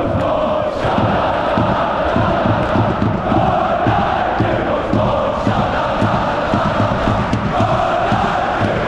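A large crowd chants loudly in a big echoing stadium.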